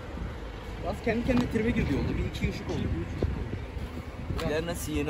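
A young man speaks close by.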